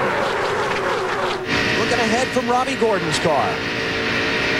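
Engines rev up and down in pitch as cars jostle in a pack.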